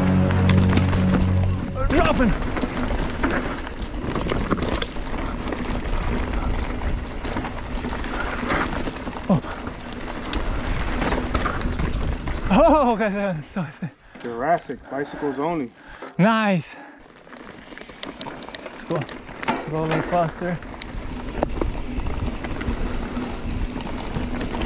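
Bike tyres crunch and rumble over a dirt trail.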